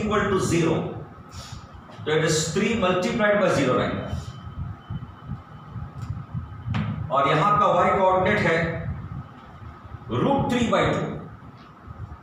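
A middle-aged man explains calmly, close by.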